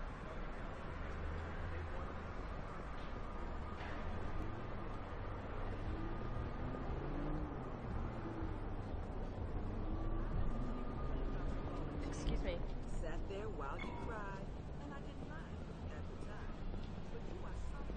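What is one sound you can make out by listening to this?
City traffic hums steadily.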